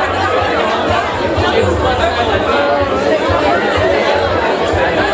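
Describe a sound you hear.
A crowd of men and women talk over one another close by in an echoing room.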